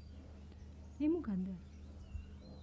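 A young woman answers with a short, rising exclamation.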